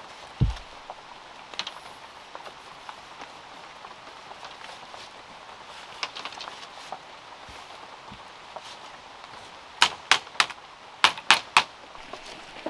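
Bamboo strips clatter and tap against each other as they are laid down.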